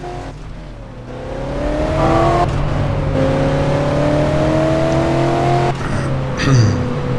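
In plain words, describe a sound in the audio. A car engine hums and revs higher as the car speeds up.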